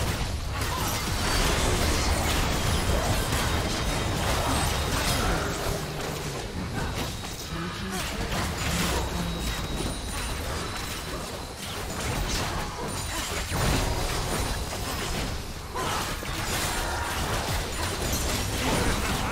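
Spell effects crackle and blast in a game fight.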